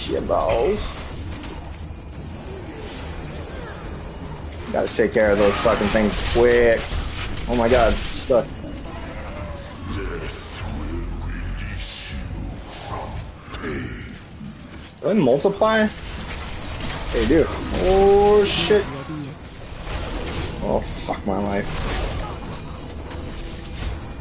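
Game spells crackle and blast in bursts.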